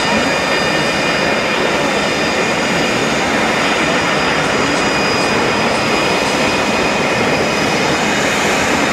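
Race car engines roar loudly around the track.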